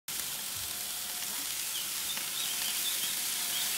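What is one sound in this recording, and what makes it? Sausages sizzle on a hot grill.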